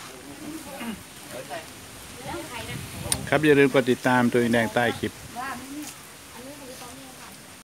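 Several people chat quietly in the background outdoors.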